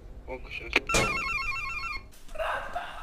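An electronic door intercom chirps as the door unlocks.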